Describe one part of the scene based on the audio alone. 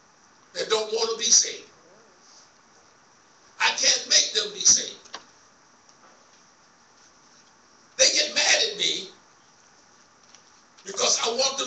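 A man preaches into a microphone in short, forceful bursts with pauses between, heard through loudspeakers in an echoing room.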